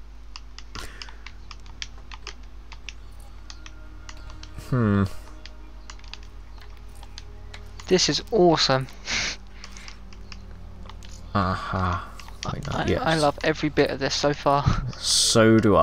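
Soft menu clicks tick as selections change.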